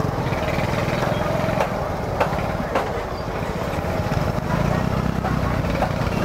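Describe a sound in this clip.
Motorbike engines idle and putter close by.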